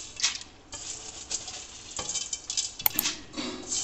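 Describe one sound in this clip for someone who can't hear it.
Dry noodles rustle as they drop into water.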